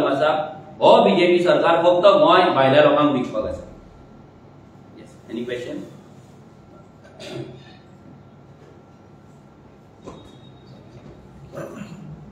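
A man speaks calmly and close by into microphones.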